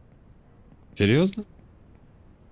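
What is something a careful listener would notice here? A man speaks briefly and close into a microphone.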